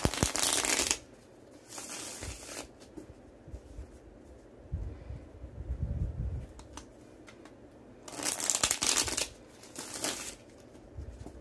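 A deck of playing cards is shuffled in quick, rustling bursts.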